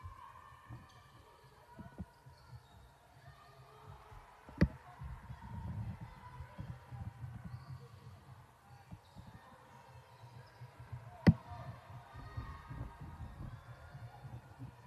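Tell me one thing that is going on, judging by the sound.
Sneakers squeak on the court.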